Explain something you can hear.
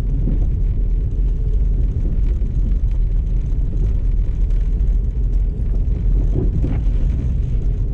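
Tyres crunch and hiss over packed snow.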